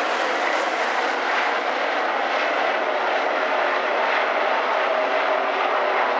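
Race car engines roar loudly as they speed past.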